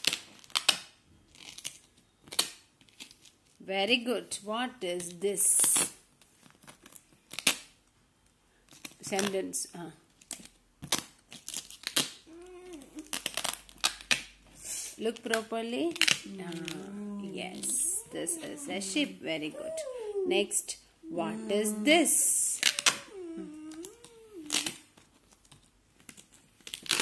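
Paper cards tap and rustle on a stiff page.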